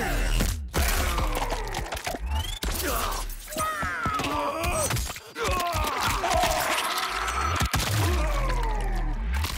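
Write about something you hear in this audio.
Flesh tears wetly.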